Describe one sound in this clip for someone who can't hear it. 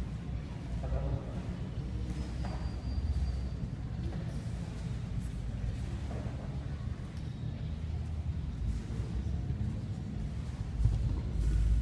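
Bare feet thud and shuffle on foam mats.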